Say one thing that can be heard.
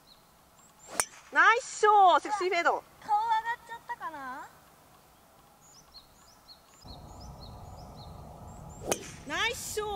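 A golf club sharply strikes a ball.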